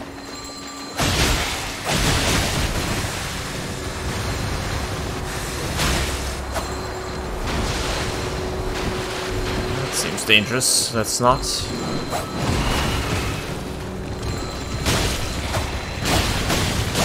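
A sword slashes with a sharp clash.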